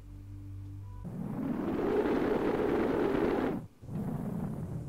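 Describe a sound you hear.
A spacecraft roars and rumbles as it burns through the air.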